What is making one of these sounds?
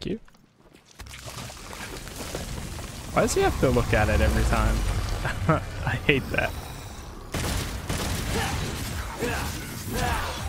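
Game combat clashes with slashing and impact sounds.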